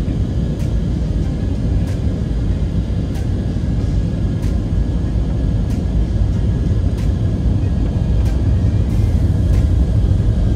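A jet engine roars with a steady low rumble in an aircraft cabin.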